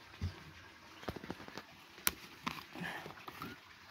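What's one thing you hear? A plastic cap twists off a bottle with small clicks.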